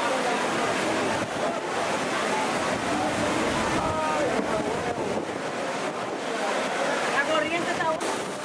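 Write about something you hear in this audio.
Water rushes and splashes around inside a water slide bowl.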